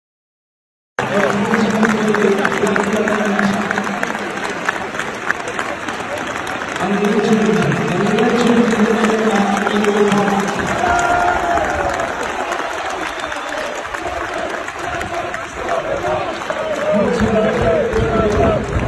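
A large stadium crowd sings and chants loudly in the open air.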